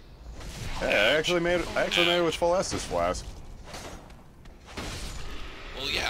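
A sword strikes metal armour with sharp clangs.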